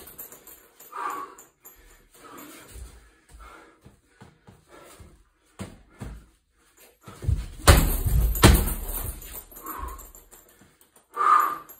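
A punching bag's chain rattles and creaks as the bag swings.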